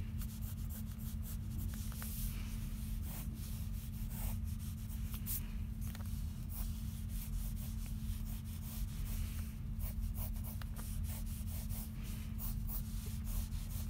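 A pencil scratches and scrapes across paper up close.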